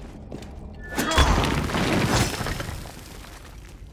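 A wall crumbles and breaks with a loud crash.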